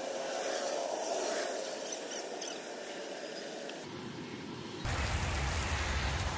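Water sprays from a garden hose and splashes against a car.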